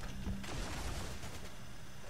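Laser guns fire in rapid bursts.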